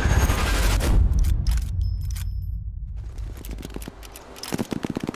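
A rifle bolt clicks and clacks as it is reloaded.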